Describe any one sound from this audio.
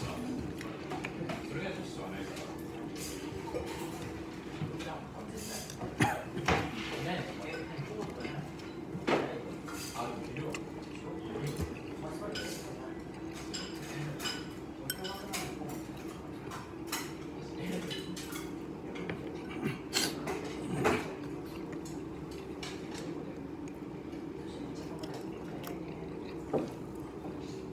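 Chopsticks click against a bowl and plate.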